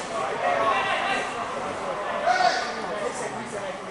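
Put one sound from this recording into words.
Two fighters' bodies thud onto the mat in a throw.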